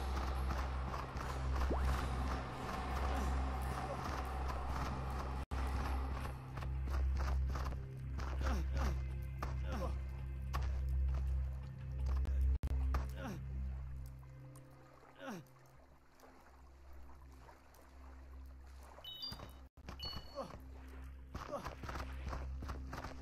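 Footsteps patter on stone.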